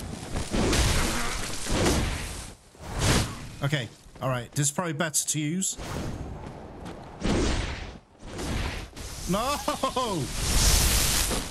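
Blades slash and strike with heavy impacts.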